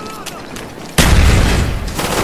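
A loud explosion booms close by and rumbles.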